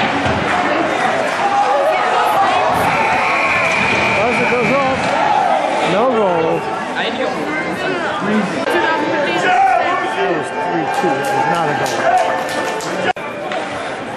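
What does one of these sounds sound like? A crowd of spectators chatters in a large echoing rink.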